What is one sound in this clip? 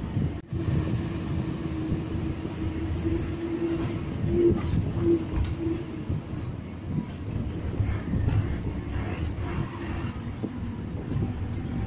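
Wind rushes past an open bus window.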